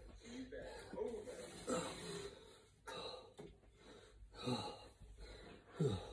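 A metal folding chair creaks and scrapes on the floor.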